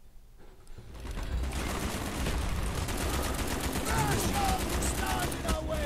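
A rifle fires bursts of shots amid loud battle noise.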